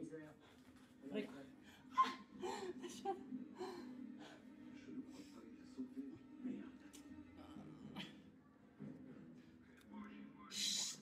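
A young woman talks and laughs close by, breathing hard.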